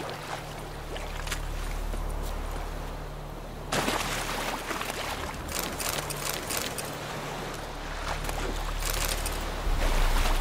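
Footsteps crunch on dirt and stone.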